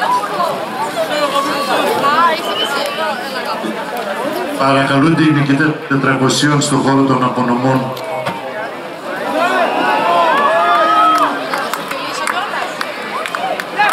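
A crowd of men and women chatters and calls out close by outdoors.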